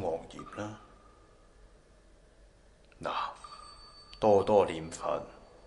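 A man speaks in a low, serious voice in short bursts.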